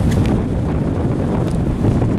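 A young boy laughs close to the microphone.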